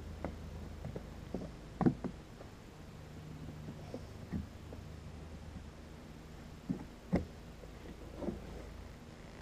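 Hard plastic knocks and clicks as a spout is fitted onto a can.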